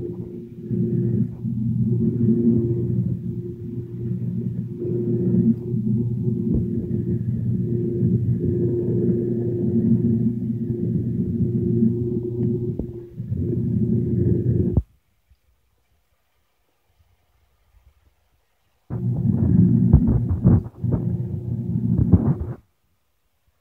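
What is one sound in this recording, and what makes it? A metal lathe hums and whirs steadily as it cuts metal.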